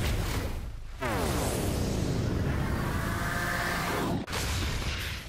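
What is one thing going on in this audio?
A monstrous creature lets out a loud, deep roar.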